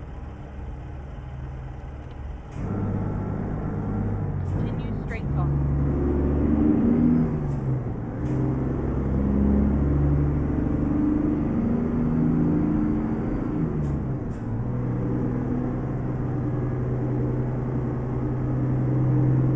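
A truck engine rumbles steadily, its pitch rising and dropping as it changes gears.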